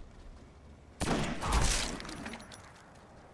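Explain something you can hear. A gunshot blasts and echoes in a video game.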